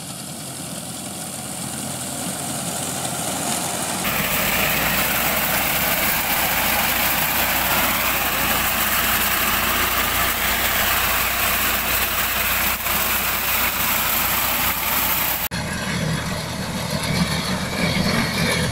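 A mower blade chatters as it cuts through tall grass and stalks.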